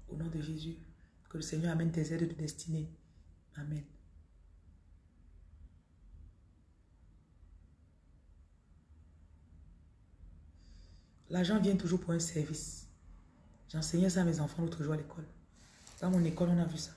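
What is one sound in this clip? A woman speaks calmly and close, with long pauses.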